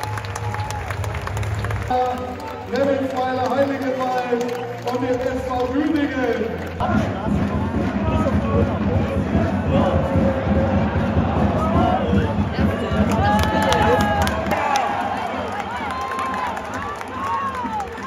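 A large stadium crowd sings and chants loudly in unison.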